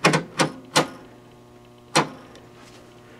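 A television channel dial clunks as it is turned.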